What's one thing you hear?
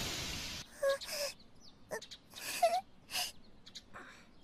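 A young girl speaks in a shaky, tearful voice.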